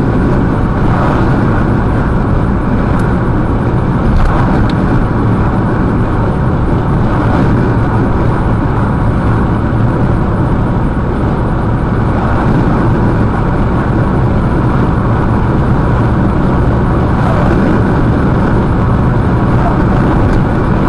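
Oncoming vehicles whoosh past on the other side of the road.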